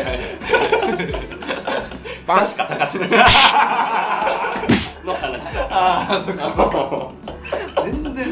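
A young man talks and laughs loudly, close by.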